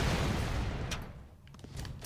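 An explosion booms and fire crackles.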